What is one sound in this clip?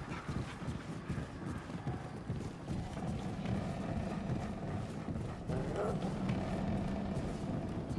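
Footsteps thud quickly on creaking wooden floorboards.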